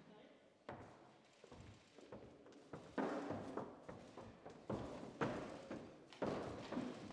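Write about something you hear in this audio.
Footsteps tap across a stage.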